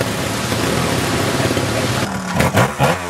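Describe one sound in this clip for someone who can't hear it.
A motorcycle engine revs nearby.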